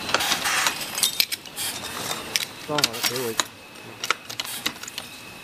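Metal hinge parts click and clack in a hand-operated press.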